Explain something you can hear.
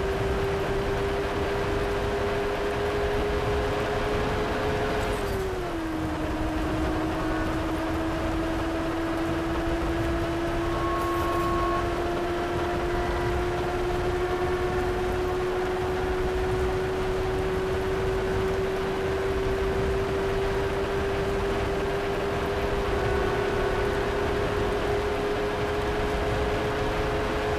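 A motorcycle engine hums steadily at speed, dropping in pitch once early on.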